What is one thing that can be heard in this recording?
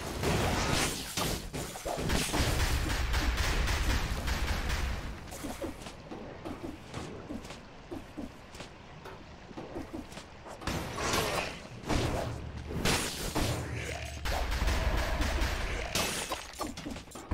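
Sword slashes and hits land in quick bursts.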